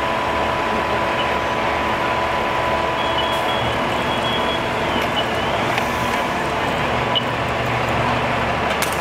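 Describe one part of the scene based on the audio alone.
A fire engine's pump engine drones loudly and steadily nearby.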